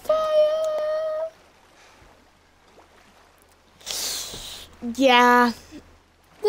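A man makes long, drawn-out sung sounds into a microphone.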